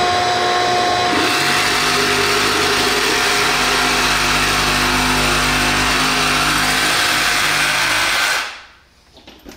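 A reciprocating saw buzzes loudly as it cuts into a wall.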